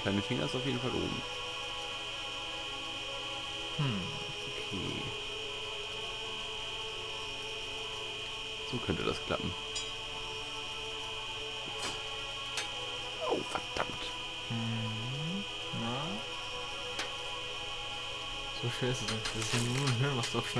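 A medical monitor gives a steady high tone.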